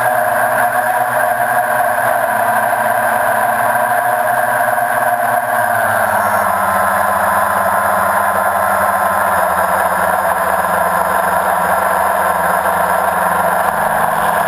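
Small aircraft motors whir steadily close by, dropping slightly in pitch partway through.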